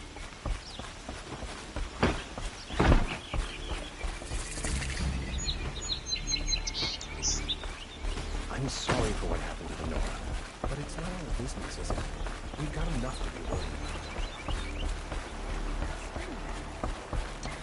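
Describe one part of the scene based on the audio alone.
Footsteps run quickly across wooden planks.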